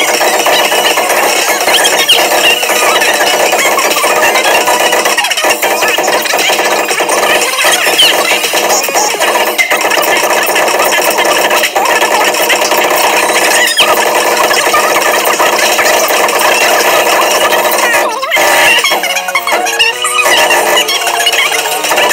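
Upbeat game music plays loudly through a loudspeaker.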